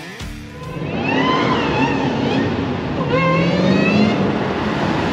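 Car tyres squeal on pavement.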